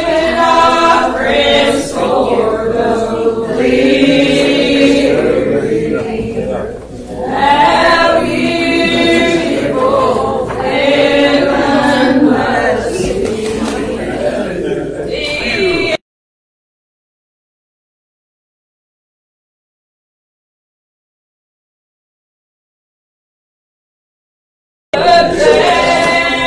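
A congregation of men and women sings a hymn together.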